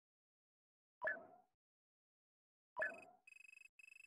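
A game menu makes short whooshing clicks as pages switch.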